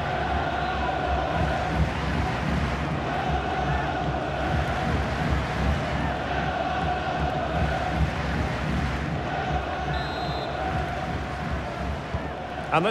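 A large crowd cheers and chants steadily in a stadium.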